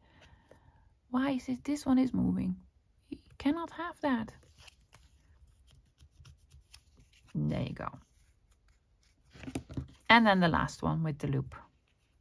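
Paper crinkles and rustles softly under fingers.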